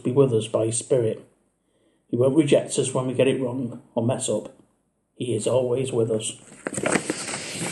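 A middle-aged man talks calmly and close to the microphone, in short phrases with pauses.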